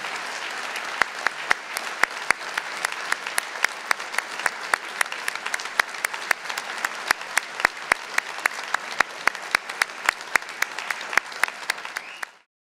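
A nearby person claps loudly and sharply.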